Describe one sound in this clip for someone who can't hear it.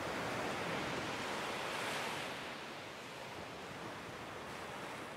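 Small waves wash gently onto a sandy shore and draw back.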